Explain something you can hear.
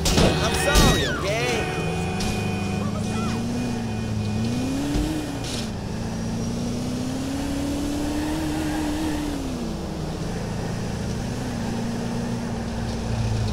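A car engine hums steadily, rising and falling in pitch.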